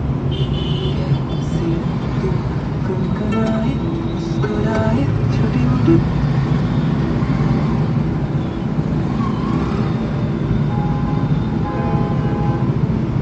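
Vehicle horns honk now and then.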